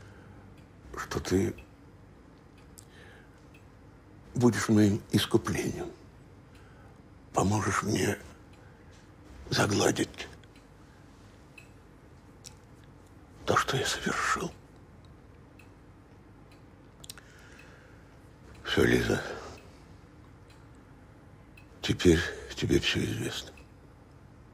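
An elderly man speaks in short, hesitant phrases nearby.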